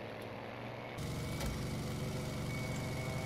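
A propeller plane's engine grows louder and deeper from inside the cockpit.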